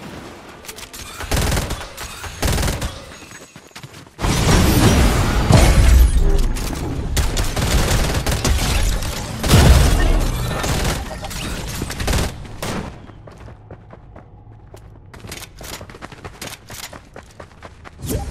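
Gunshots from a video game crack in rapid bursts.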